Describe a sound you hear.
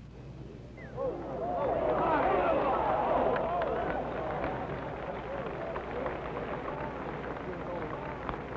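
A large crowd outdoors cheers and shouts loudly.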